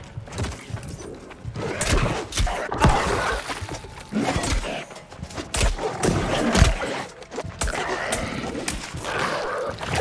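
Fire roars and crackles in bursts.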